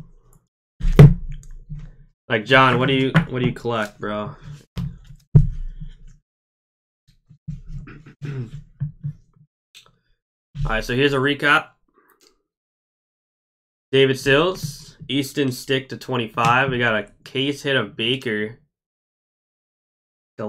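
Hard plastic card cases clack together in hands.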